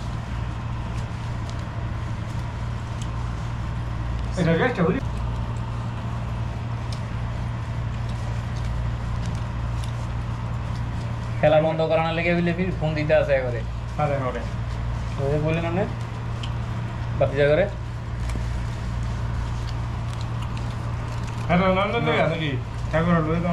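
Hands squish and mix rice on a crinkling plastic sheet.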